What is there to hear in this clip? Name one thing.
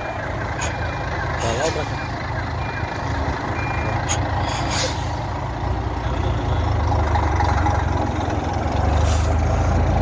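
An old diesel truck engine idles.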